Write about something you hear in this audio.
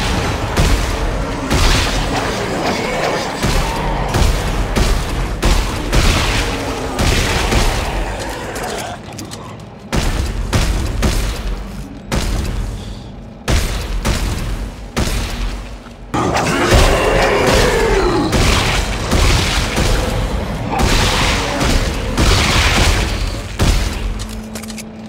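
Energy weapon shots fire in quick bursts, each one sharp and loud.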